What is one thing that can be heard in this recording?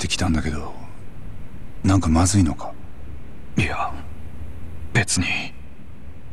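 A man speaks quietly and briefly.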